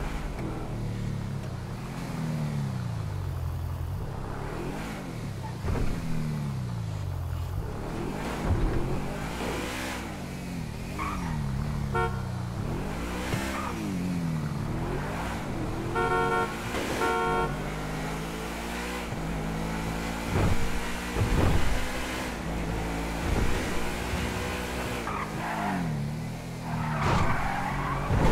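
A car engine revs up and down as the car drives.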